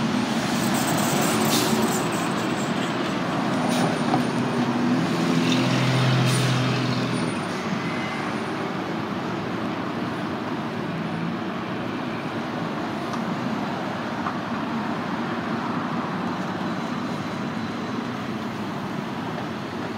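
Road traffic hums steadily nearby.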